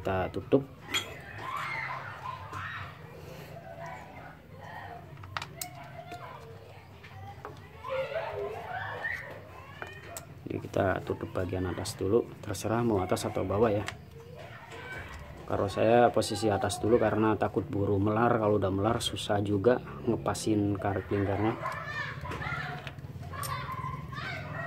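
Small metal parts click and tap as a carburettor is handled.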